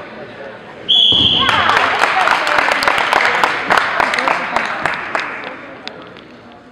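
Spectators cheer and clap loudly.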